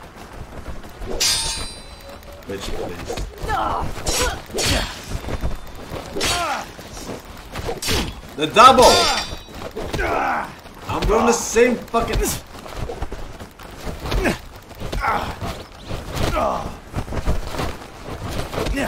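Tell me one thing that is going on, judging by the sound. Swords clash and clang in quick bursts.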